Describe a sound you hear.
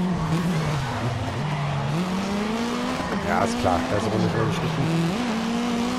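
Tyres screech on asphalt through a corner.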